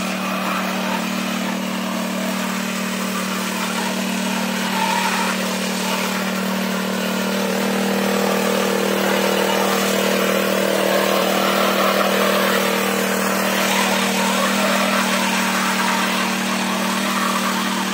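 A small petrol tiller engine runs with a steady drone close by.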